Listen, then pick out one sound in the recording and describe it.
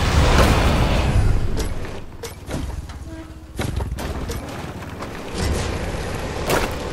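A small off-road vehicle engine roars loudly and then idles down.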